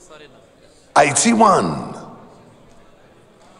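A man calls out loudly, echoing in a large hall.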